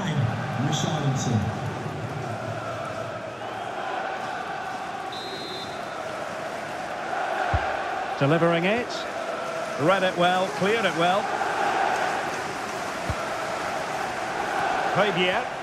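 A stadium crowd roars and murmurs steadily.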